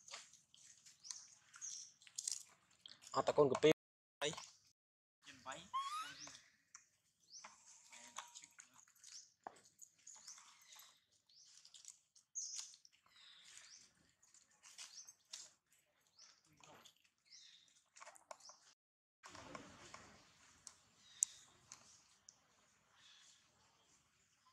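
A baby monkey squeaks and cries in high, thin calls.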